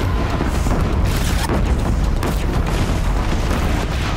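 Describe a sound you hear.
An explosion booms and debris scatters.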